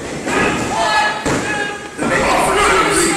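A wrestler crashes down onto a ring mat with a heavy thud.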